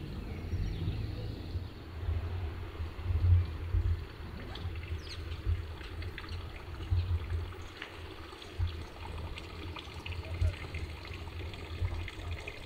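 Wind buffets gently outdoors.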